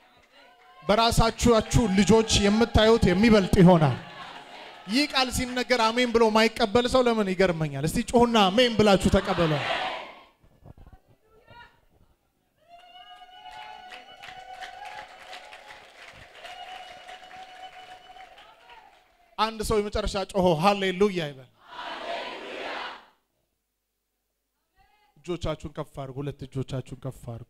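A young man preaches loudly and with passion into a microphone, heard through loudspeakers in a large room.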